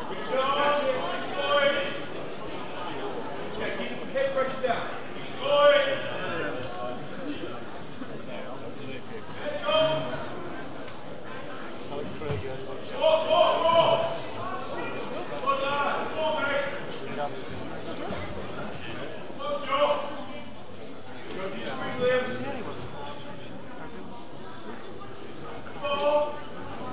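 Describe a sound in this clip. Men in a crowd shout instructions loudly in short bursts, echoing in a large hall.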